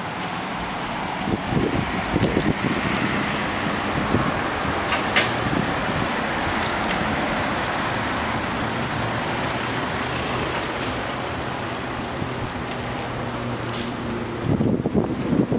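Traffic drives by on a nearby road.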